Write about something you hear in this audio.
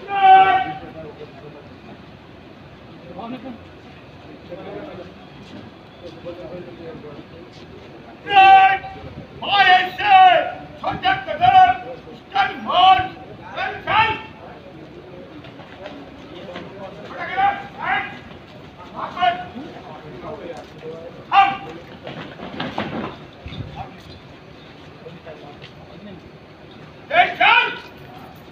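A man shouts drill commands loudly outdoors.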